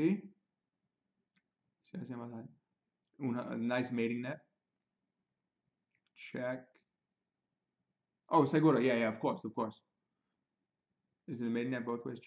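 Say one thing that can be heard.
A young man speaks calmly and clearly into a close microphone, in short bursts with pauses.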